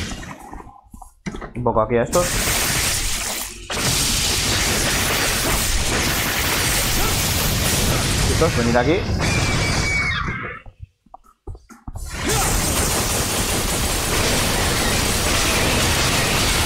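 Blades slash and clash rapidly in a fight.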